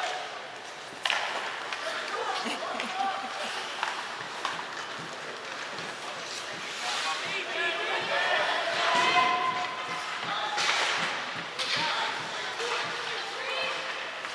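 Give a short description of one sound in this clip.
Hockey sticks clack against a puck and against each other.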